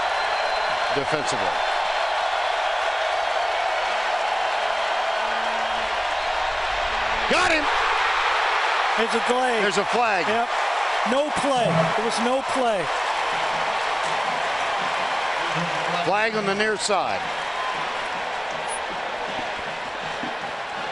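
A large stadium crowd roars steadily outdoors, swelling louder for a while.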